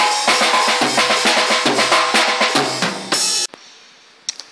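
A drum kit is played hard with crashing cymbals.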